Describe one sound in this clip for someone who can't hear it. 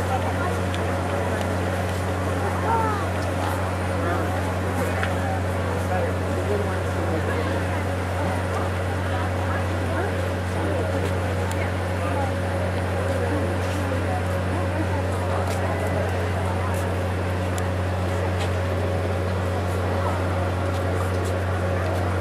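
A crowd murmurs and chatters in a large arena.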